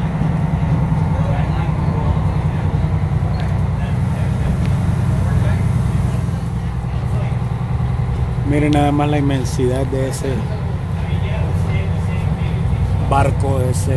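A boat engine rumbles low and steadily.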